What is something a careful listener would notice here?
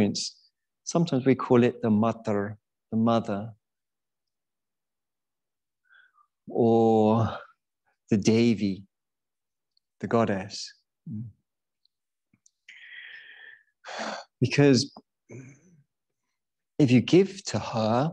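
A man speaks calmly and slowly, close to a microphone, with long pauses.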